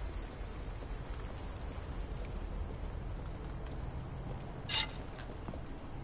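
Footsteps splash slowly on wet ground.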